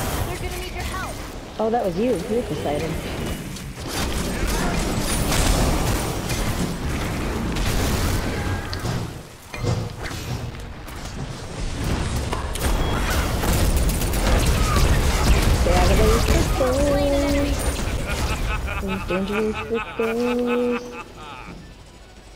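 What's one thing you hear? Magic blasts crash and whoosh in a fast fight.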